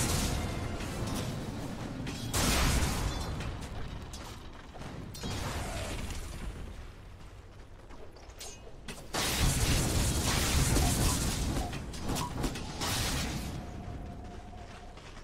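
Weapons clash and strike in quick hits.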